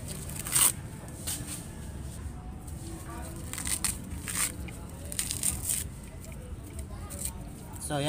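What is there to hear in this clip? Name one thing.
Fingers tear and rip dry coconut husk fibres.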